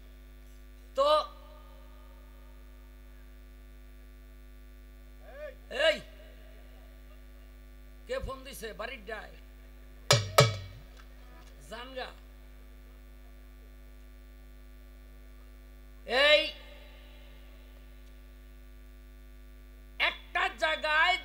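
A middle-aged man sings loud short phrases through a microphone.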